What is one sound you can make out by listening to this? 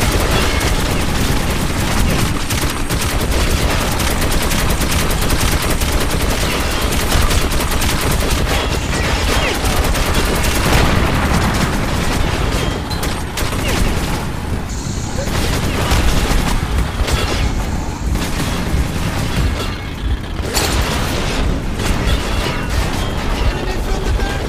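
A heavy machine gun fires in rapid, loud bursts.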